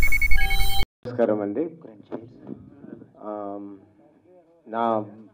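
A man speaks into a microphone in a calm, steady voice.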